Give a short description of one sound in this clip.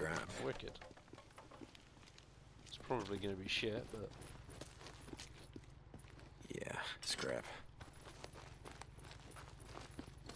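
Footsteps crunch on gravel and dirt.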